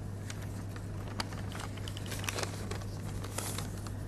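Paper rustles softly close by.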